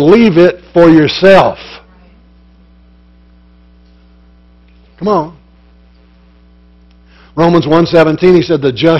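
An older man speaks calmly through a microphone, with pauses.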